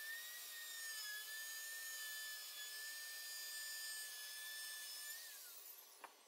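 A wood router whines steadily while cutting.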